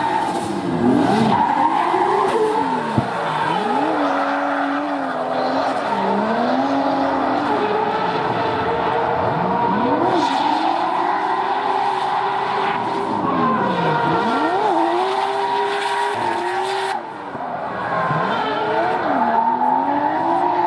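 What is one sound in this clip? Tyres screech loudly on tarmac as a car drifts.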